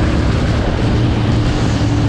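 A heavy truck rumbles past.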